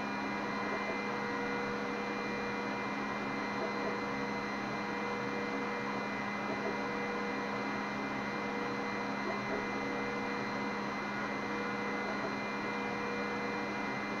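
A laser engraver hums steadily with a whirring fan.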